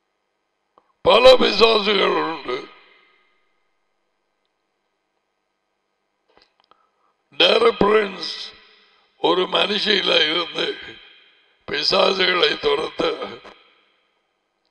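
An older man speaks emphatically into a close headset microphone, in short bursts with pauses.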